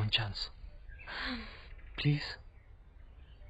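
A young woman speaks lightly and close by.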